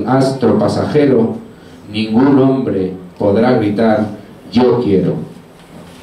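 A man speaks through a microphone in short phrases.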